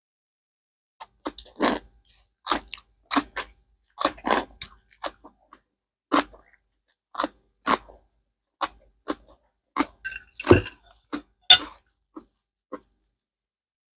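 A woman slurps noodles and chews loudly close to a microphone.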